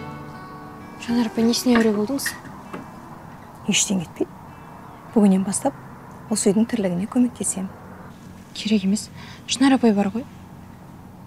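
A young woman answers calmly, close by.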